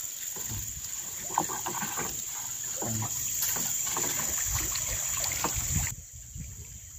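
A pole splashes and knocks in shallow river water.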